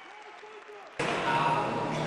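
An audience cheers and applauds loudly.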